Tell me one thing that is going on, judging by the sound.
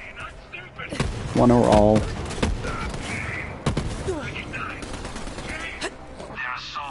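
Gunshots crack in short, sharp bursts.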